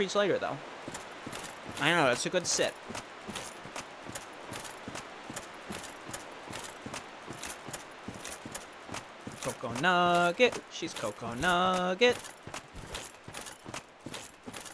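Heavy armoured footsteps tramp quickly over soft ground.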